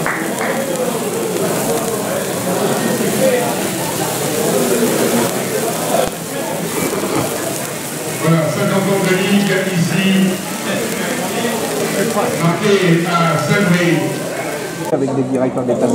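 Sparklers hiss and fizz steadily.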